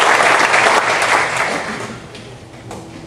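An audience applauds in a large room, and the clapping fades.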